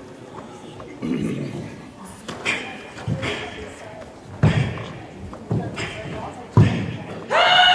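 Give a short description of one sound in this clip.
Bare feet stamp and thud on a wooden floor in a large echoing hall.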